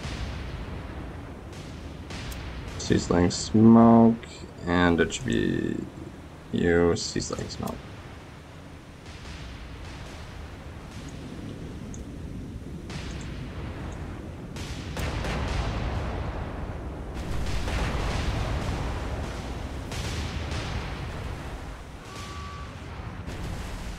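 Waves wash and churn steadily.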